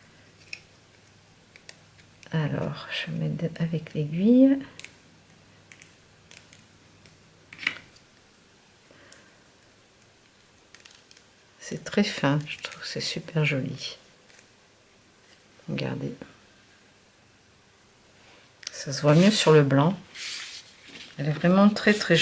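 Small paper pieces rustle and tap under fingers.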